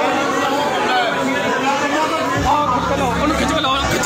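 An older man shouts angrily up close.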